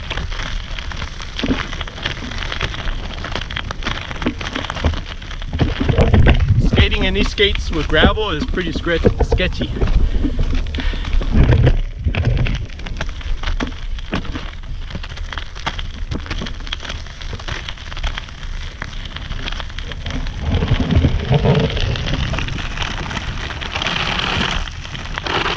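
Skate wheels roll and crunch over gravel.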